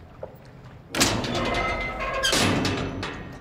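A metal hatch clanks open.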